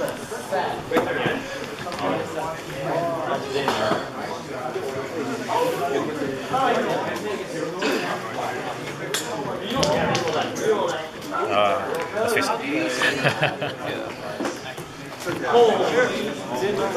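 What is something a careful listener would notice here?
Young men talk back and forth across a table.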